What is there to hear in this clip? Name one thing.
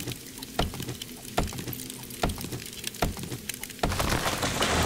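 An axe chops into a tree trunk with regular hollow thuds.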